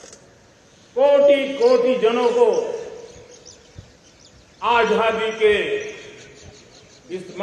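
An elderly man speaks forcefully into a microphone, heard over a loudspeaker with echo.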